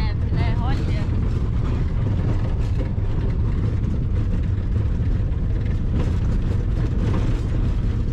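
Tyres crunch on a gravel road.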